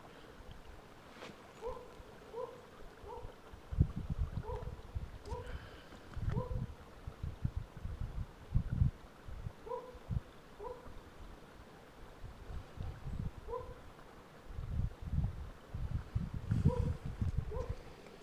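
A dog runs over wet grass with soft, thumping footfalls.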